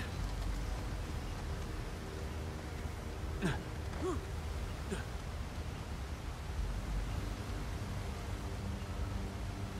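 A waterfall roars and splashes.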